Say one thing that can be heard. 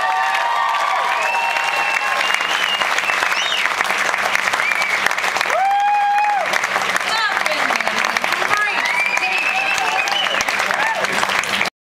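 A woman sings loudly through a microphone.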